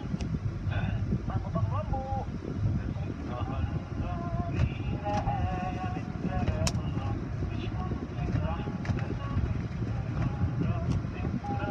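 Large cloth brushes slap and scrub across a car's glass.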